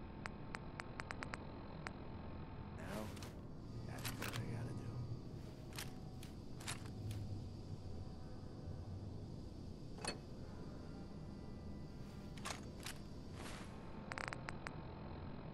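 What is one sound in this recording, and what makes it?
A handheld device's menu clicks quickly as its entries are scrolled.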